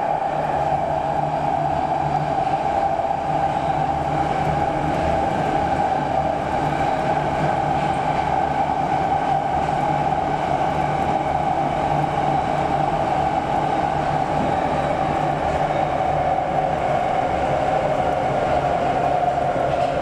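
A subway train roars loudly through a tunnel at speed.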